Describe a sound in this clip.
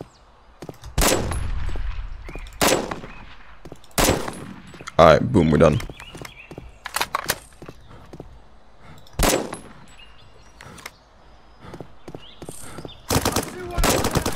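A rifle fires loud, sharp single shots.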